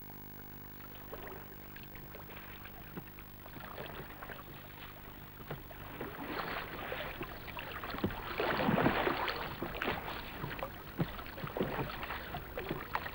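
Oars splash and dip in calm water.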